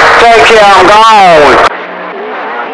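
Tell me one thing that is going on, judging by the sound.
A radio receiver squeals with loud sweeping whistles as it is tuned.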